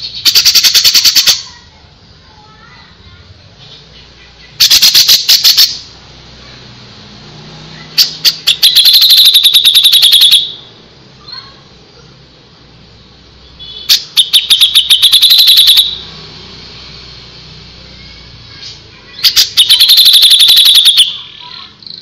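A songbird sings loud, fast, rattling bursts of song close by.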